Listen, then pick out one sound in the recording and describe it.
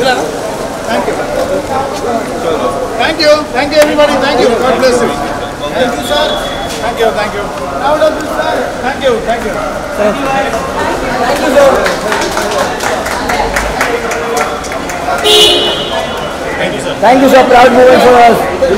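A crowd of men talk and call out close by, with animation.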